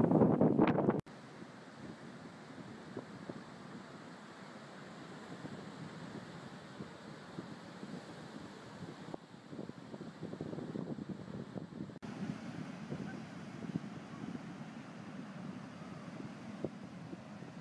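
Waves wash and break steadily on the shore.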